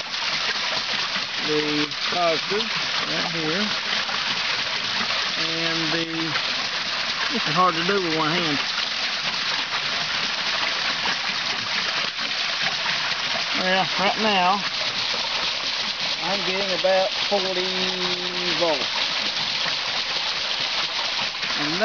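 An engine runs steadily nearby.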